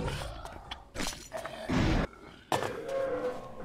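Heavy blows thud against a snarling creature.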